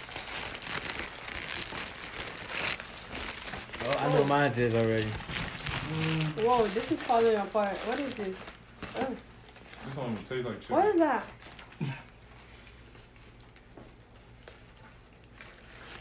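Paper food wrappers rustle and crinkle.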